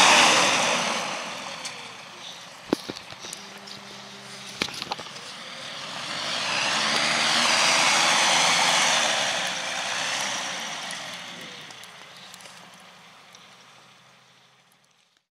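A hovercraft's propeller fan roars loudly, surging and fading as the craft moves away.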